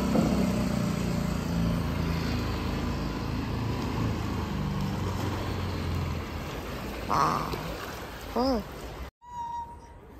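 River water ripples and laps gently.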